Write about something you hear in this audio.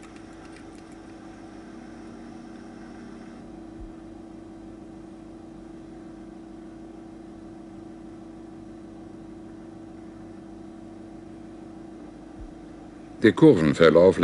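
A plotter motor hums softly and steadily.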